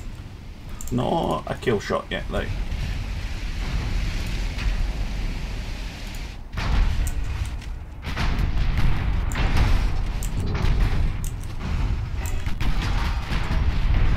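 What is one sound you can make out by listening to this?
Naval guns fire in heavy booms.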